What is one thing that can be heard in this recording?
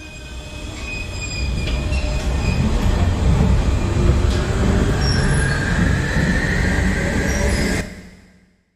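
A young man beatboxes close to a microphone, imitating a train rumbling and squealing.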